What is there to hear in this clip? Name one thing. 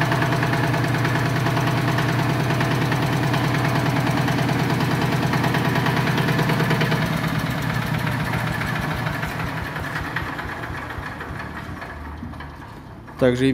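A small engine runs with a steady chugging hum, then fades away.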